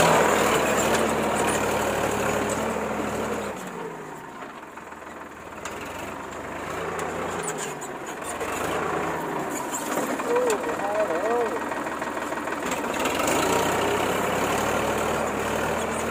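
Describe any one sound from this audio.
A harrow scrapes and churns through soil.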